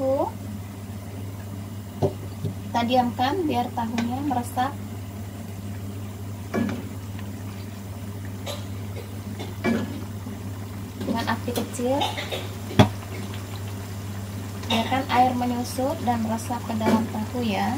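A metal spatula scrapes and knocks against a wok while stirring.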